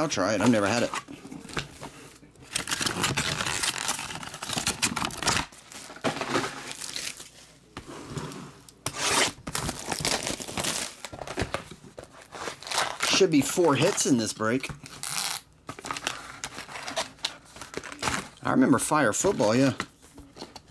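Foil card packs crinkle and rustle as hands handle them.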